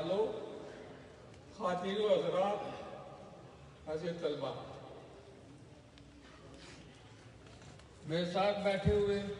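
An elderly man speaks slowly and deliberately into a microphone, heard through a loudspeaker with some echo.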